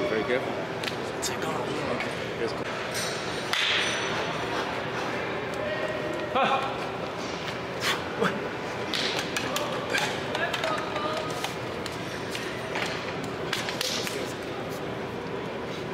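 Young men talk and call out nearby in a large echoing hall.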